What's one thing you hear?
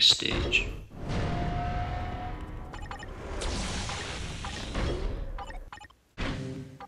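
A shimmering magical whoosh swells and fades.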